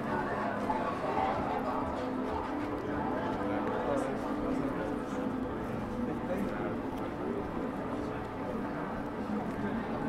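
Footsteps tap on wet paving.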